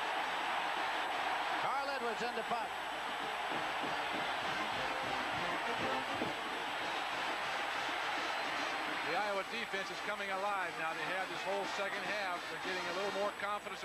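A large crowd roars in a stadium.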